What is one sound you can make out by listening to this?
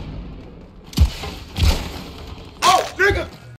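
Blaster shots fire in quick bursts.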